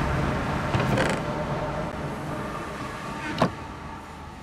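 A wooden chest creaks open and thuds shut.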